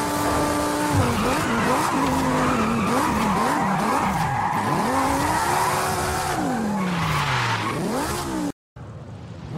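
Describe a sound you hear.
A car engine revs up and down sharply.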